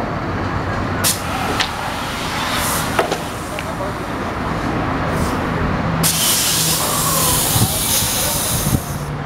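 Air hisses sharply from a truck's brakes.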